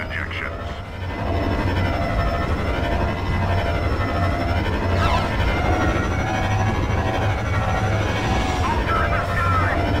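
Starfighter engines roar steadily.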